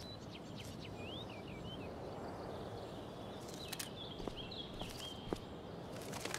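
A small bird chirps softly.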